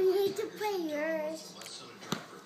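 A young boy talks excitedly, close by.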